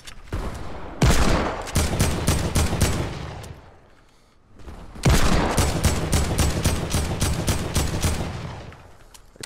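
Rapid gunfire crackles in bursts.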